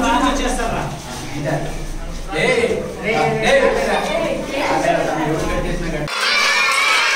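A crowd of children chatters loudly nearby.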